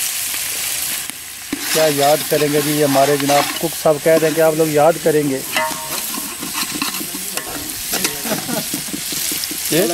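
A metal spoon scrapes and stirs inside a metal pot.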